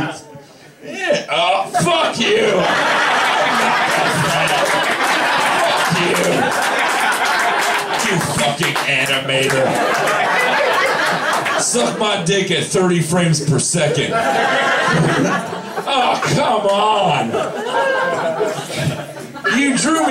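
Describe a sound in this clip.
A man talks with animation into a microphone, heard through loudspeakers in an echoing room.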